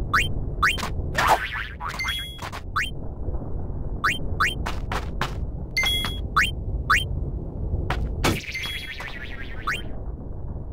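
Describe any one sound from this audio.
A sword slashes with a sharp whoosh.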